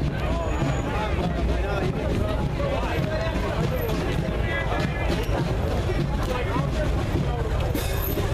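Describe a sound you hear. A motorcycle engine idles as it rolls slowly.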